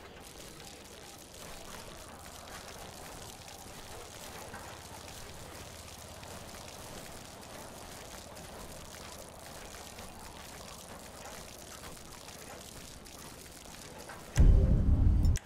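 Liquid pours and splashes steadily onto the ground.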